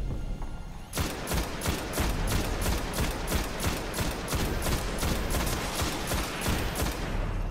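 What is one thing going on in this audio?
A rifle fires in rapid, steady bursts of loud shots.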